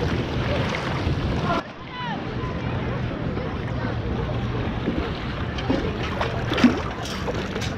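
Water splashes as a scoop digs into shallow water.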